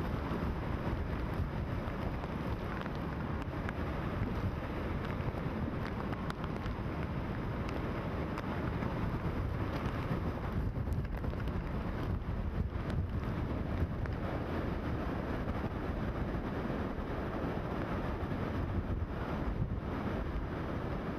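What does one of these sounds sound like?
Palm trees thrash and rustle in the gusts.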